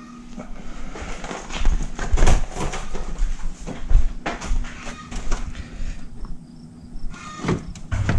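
A plastic grille rattles as it is handled.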